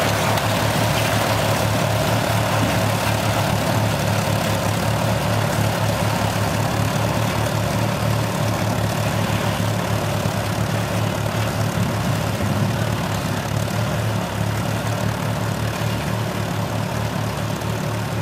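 A tractor engine chugs steadily as it pulls a plough.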